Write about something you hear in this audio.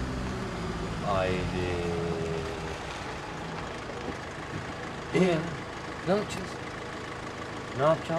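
A man calls out from inside a van.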